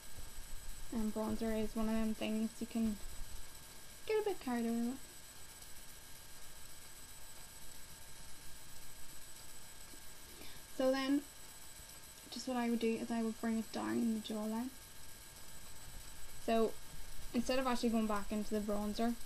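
A young woman sings softly close by.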